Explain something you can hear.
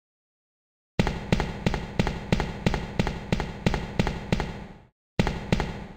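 Footsteps run quickly across a hard tiled floor.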